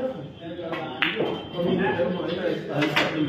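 Pool balls knock together and roll across the table.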